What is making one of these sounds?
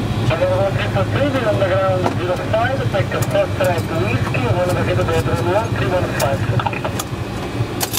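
Switches click in a cockpit.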